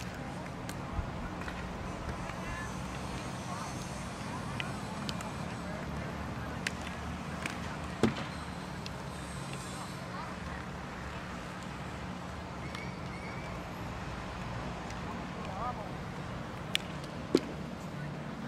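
Hockey sticks click sharply against a ball outdoors.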